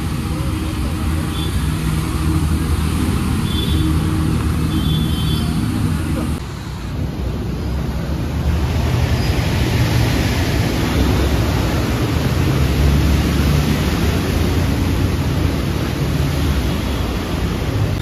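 Motorbike engines hum as bikes ride through deep water.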